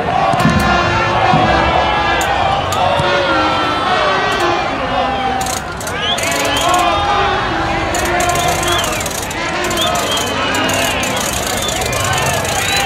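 A large crowd chatters and shouts steadily outdoors.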